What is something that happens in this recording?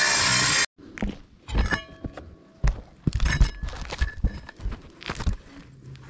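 Boots scuff and tap on roof shingles close by.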